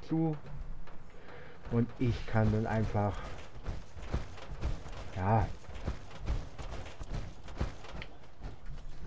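Heavy metal footsteps thud steadily.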